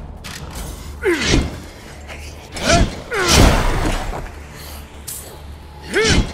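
A gun fires loud booming shots.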